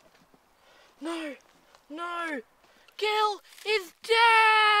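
A young boy calls out loudly in long, drawn-out sung notes close by.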